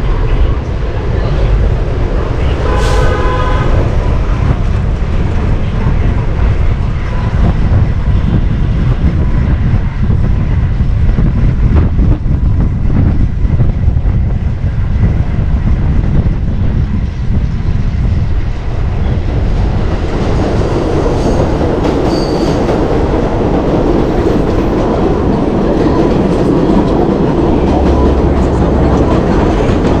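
Car and truck engines rumble nearby in traffic.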